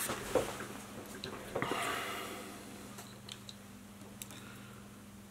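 Small objects click and tap faintly as they are handled.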